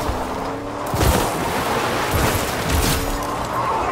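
Water splashes as a truck plows through a stream.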